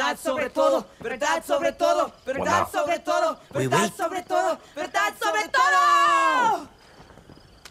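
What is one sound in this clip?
A young man shouts with animation, ending in a long drawn-out yell.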